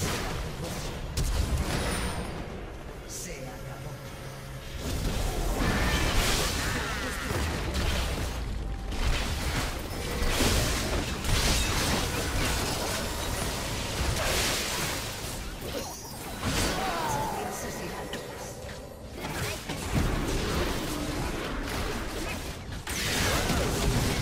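Game spell effects and combat sounds clash and burst.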